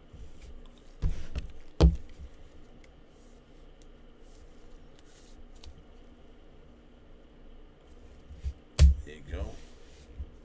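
A plastic card sleeve rustles and taps as it is handled.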